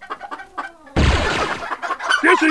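A wet splat hits hard.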